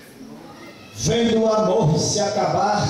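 An older man speaks into a microphone through loudspeakers.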